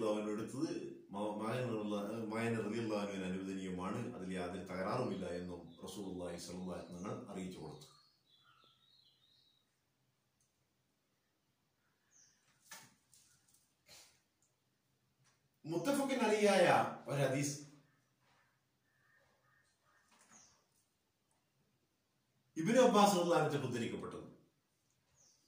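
A middle-aged man speaks calmly and steadily close to the microphone, with long pauses.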